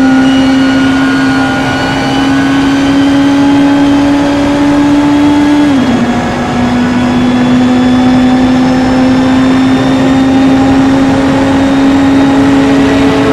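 A race car engine roars steadily at high revs.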